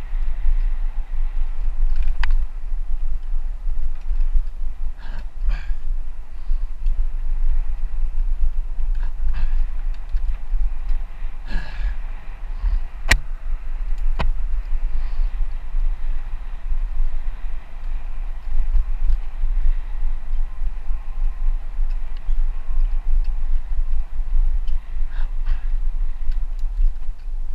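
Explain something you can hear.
Bicycle tyres roll steadily over a dirt trail.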